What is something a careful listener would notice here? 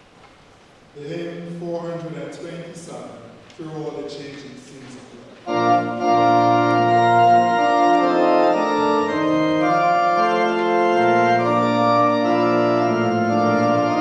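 A group of people sing a hymn together in an echoing hall.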